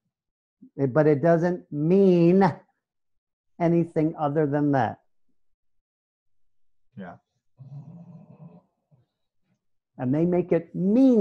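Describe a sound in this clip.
A middle-aged man speaks calmly and with animation into a headset microphone, heard as over an online call.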